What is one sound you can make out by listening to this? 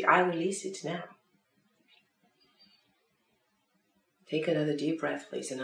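A woman speaks calmly and close by, pausing briefly.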